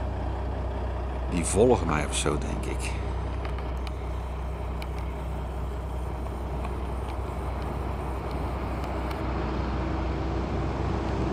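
Traffic hums steadily on a distant highway.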